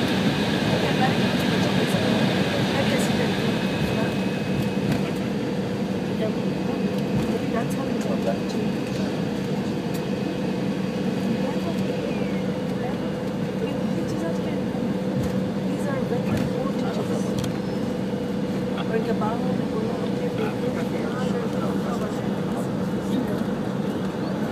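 Wheels rumble and thump over a runway.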